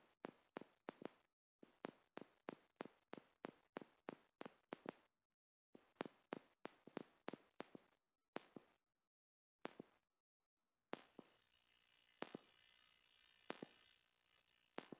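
Footsteps slap quickly on wet pavement.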